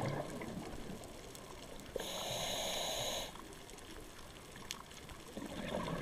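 A muffled underwater hush goes on throughout, with faint crackling.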